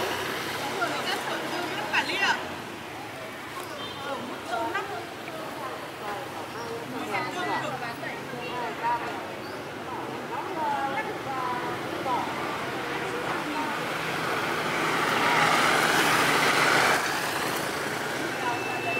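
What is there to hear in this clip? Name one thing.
Women talk with animation nearby outdoors.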